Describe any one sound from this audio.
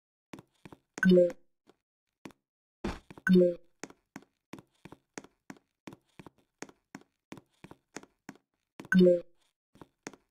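Short game jump sounds boom now and then.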